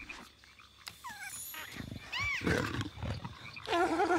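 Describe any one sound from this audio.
A small creature squeaks and chirps.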